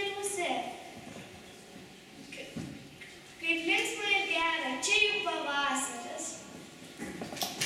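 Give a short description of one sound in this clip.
A young girl recites expressively into a microphone in an echoing hall.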